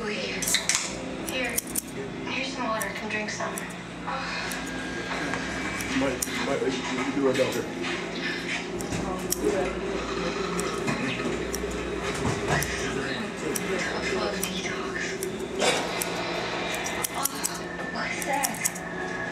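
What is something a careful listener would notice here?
Scissors snip through hair in quick, light clicks.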